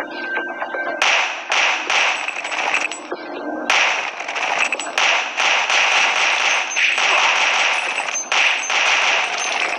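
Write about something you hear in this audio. Pistol shots fire rapidly, one after another.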